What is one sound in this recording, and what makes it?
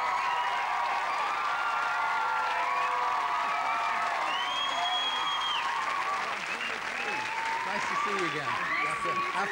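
A crowd of women cheer and scream excitedly.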